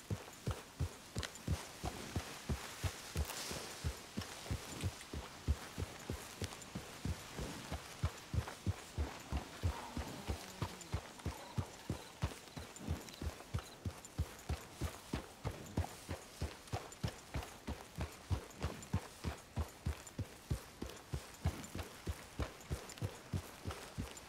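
Horse hooves thud steadily on soft ground at a walk.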